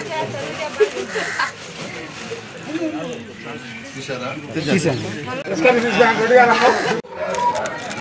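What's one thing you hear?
A group of people talk at once outdoors.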